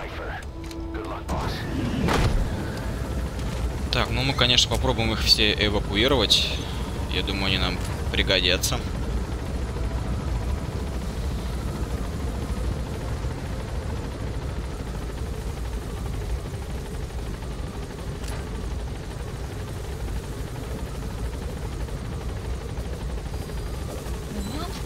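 A helicopter's engine and rotor drone steadily, heard from inside the cabin.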